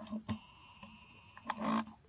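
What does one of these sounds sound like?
A small monkey knocks against a metal bowl.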